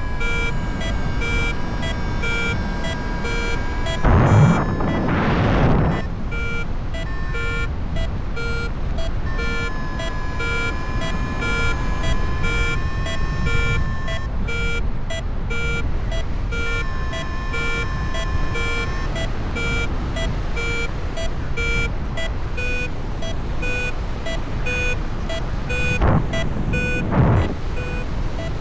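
Wind rushes steadily past in flight.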